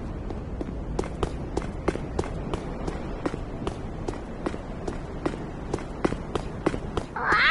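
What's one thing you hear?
Quick footsteps tap on roof tiles.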